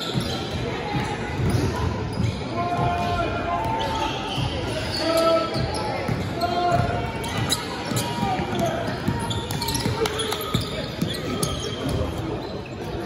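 Young players shout to each other across the court.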